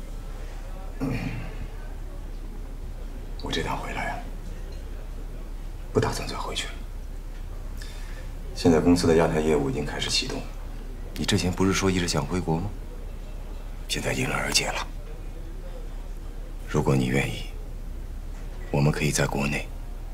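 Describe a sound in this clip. A man speaks calmly and earnestly, close by.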